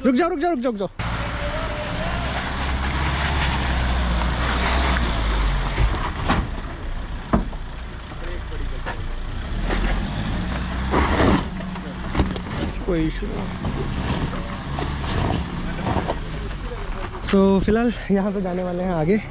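An off-road vehicle's engine rumbles and revs as it climbs over rocks.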